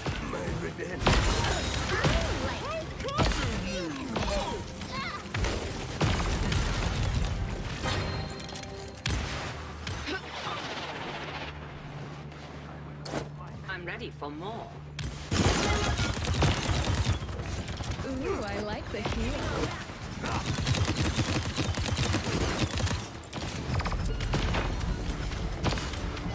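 Gunfire and energy blasts crackle and bang in rapid bursts.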